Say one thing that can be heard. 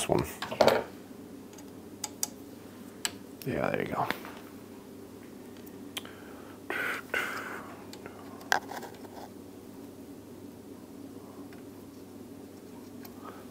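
Small metal parts click and tick as a bow is adjusted by hand.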